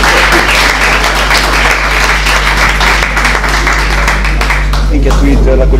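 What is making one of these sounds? A small audience applauds in an echoing room.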